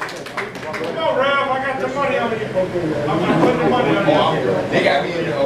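A crowd cheers and shouts nearby.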